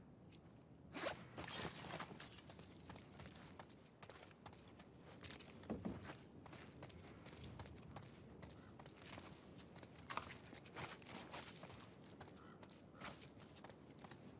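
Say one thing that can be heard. Footsteps crunch softly on a gritty floor.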